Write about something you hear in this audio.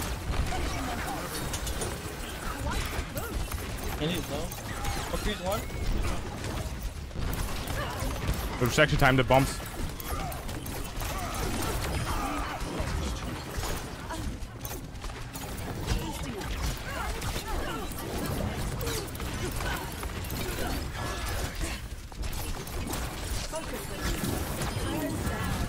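Gunfire rattles in quick bursts in a video game.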